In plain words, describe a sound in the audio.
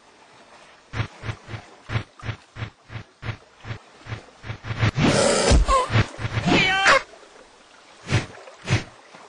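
Quick cartoon footsteps patter on sand.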